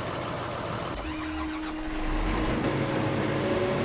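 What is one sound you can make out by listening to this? A combine harvester engine drones loudly.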